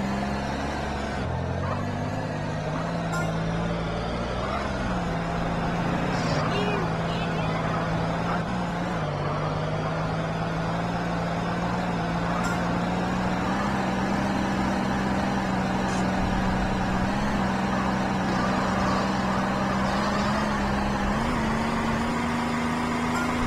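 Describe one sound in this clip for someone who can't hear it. A car engine roars steadily at speed, shifting pitch now and then.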